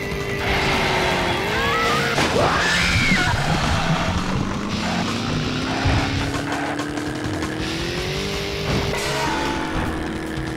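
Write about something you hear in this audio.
A kart engine whines, rising in pitch as it speeds up.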